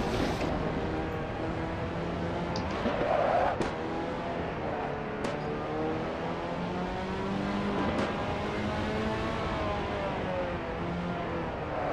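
A racing car engine roars steadily, rising and falling in pitch as the car shifts gears.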